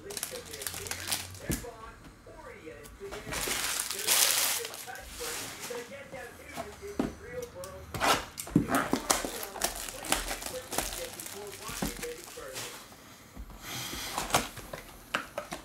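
Plastic wrapping crinkles and tears as it is pulled off a box.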